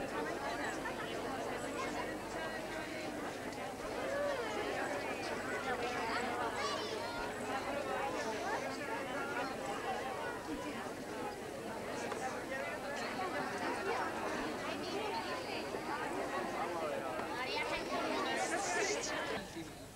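A large outdoor crowd of men and women chatters.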